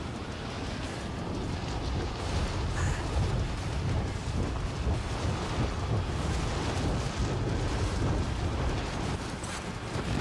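Wind rushes loudly past during a fast fall.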